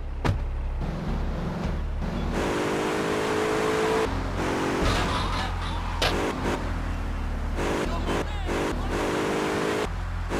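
A car engine hums and revs as a car drives off.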